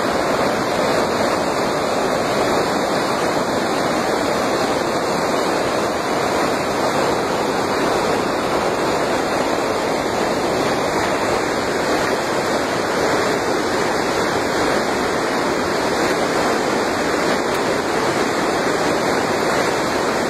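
Floodwater rushes and roars steadily close by.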